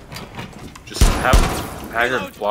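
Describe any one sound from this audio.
Gunshots crack in a short burst.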